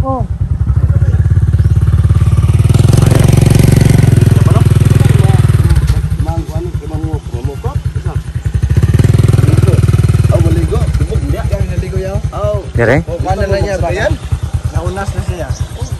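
A motorcycle engine idles and revs loudly.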